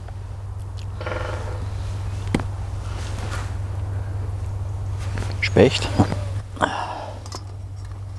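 An older man speaks calmly, close by.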